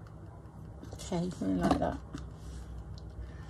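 Paper card rustles as it is picked up.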